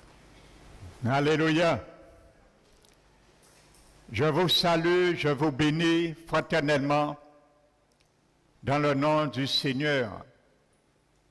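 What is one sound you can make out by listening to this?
An elderly man preaches with animation through a microphone in an echoing hall.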